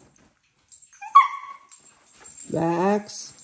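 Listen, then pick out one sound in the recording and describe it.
A dog barks and whines playfully close by.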